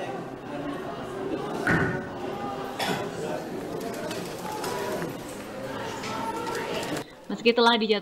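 A crowd murmurs and jostles nearby.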